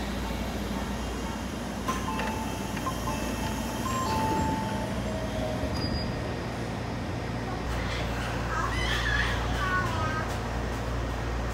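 A stopped train's engine hums steadily nearby.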